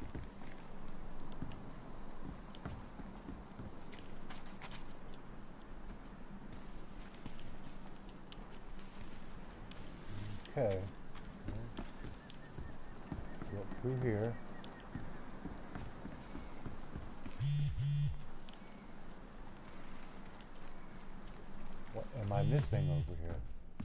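Footsteps tread steadily over ground and through rustling plants.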